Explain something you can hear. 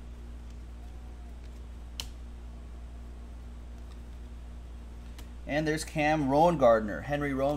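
Trading cards shuffle and flick between fingers.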